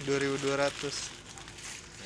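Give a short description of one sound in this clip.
A plastic noodle packet crinkles in a hand.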